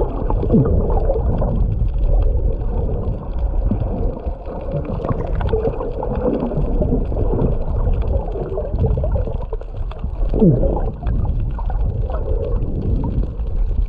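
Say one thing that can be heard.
A swimmer's arm strokes through the water.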